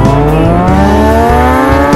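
A motorcycle engine hums as the motorcycle rides away.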